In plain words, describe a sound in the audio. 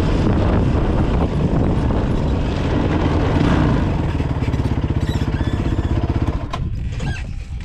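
A quad bike engine rumbles close by as the bike rolls over rough ground.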